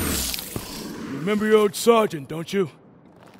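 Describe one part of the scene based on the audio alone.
A man speaks firmly at close range.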